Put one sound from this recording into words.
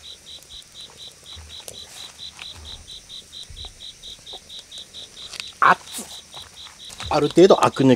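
Water boils and bubbles in a pot.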